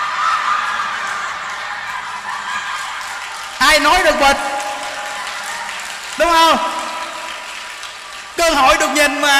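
A crowd of women laughs loudly.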